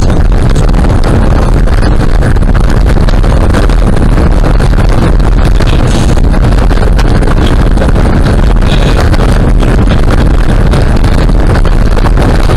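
A car's cabin rattles and clatters over bumps.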